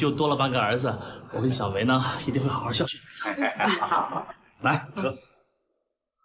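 A young man speaks warmly and close by.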